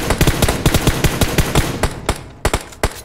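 Rifle shots fire in a rapid, loud burst.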